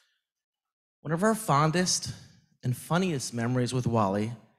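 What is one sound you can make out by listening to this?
A man speaks clearly into a microphone.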